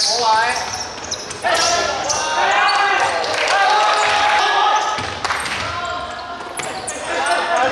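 A basketball bounces on the court with echoing thuds.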